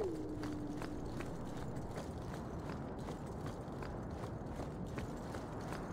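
Footsteps tap quickly on stone paving.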